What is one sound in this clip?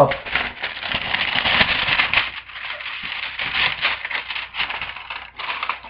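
Plastic wrapping crinkles and rustles close by.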